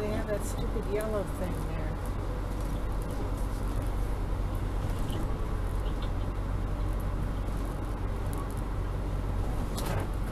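A motorhome's engine rumbles at low speed, heard from inside the cab.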